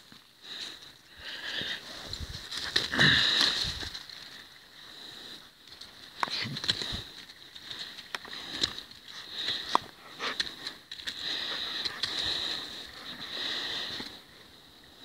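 Footsteps crunch on a leaf-covered path.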